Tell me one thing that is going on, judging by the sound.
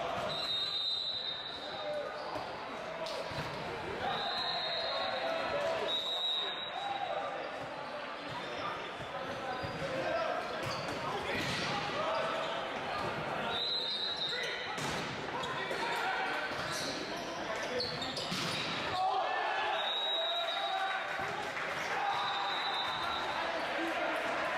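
A crowd of players and spectators shouts and cheers in a large echoing hall.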